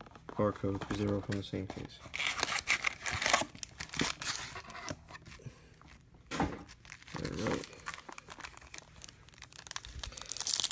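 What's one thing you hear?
Foil card wrappers crinkle and rustle as hands handle them.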